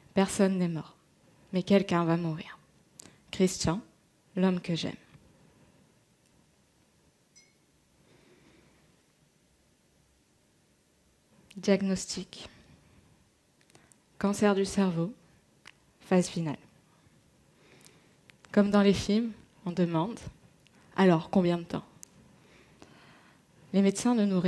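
A young woman speaks calmly and slowly into a headset microphone, pausing between phrases.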